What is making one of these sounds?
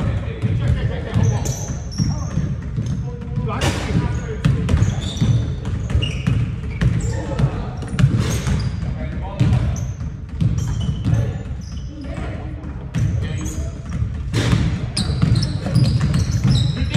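Sneakers squeak sharply on a wooden court in a large echoing gym.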